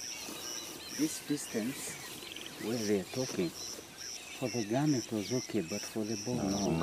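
An older man speaks calmly, close by.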